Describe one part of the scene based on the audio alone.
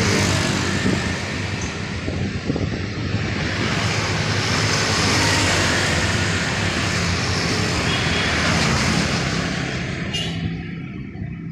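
Motorbikes ride past close by, their engines buzzing.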